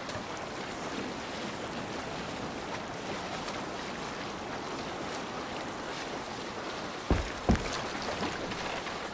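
Water splashes and rushes against the hull of a moving boat.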